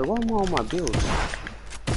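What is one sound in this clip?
Rapid gunfire crackles in a video game.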